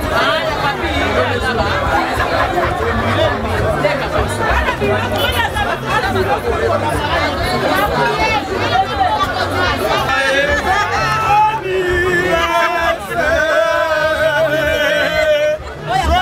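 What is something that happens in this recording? A lively crowd chatters and shouts loudly all around.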